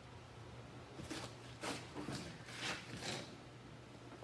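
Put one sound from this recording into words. Panels scrape and rustle as they are fitted.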